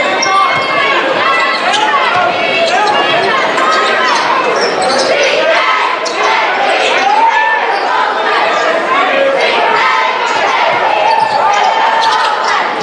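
A large crowd cheers and murmurs in an echoing gym.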